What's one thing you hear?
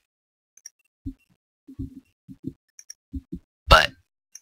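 Footsteps thud softly on stone.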